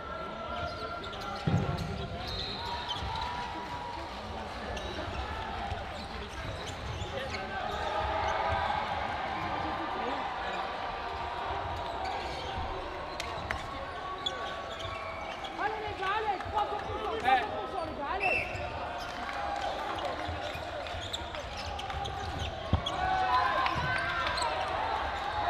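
A ball bounces and thuds on a wooden court.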